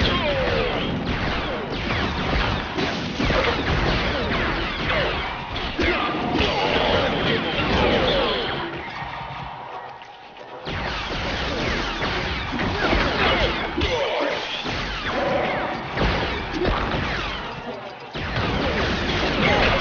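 Small studs jingle as they are collected.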